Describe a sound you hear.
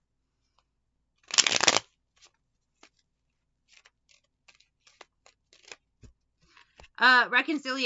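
Cards shuffle and rustle softly in someone's hands.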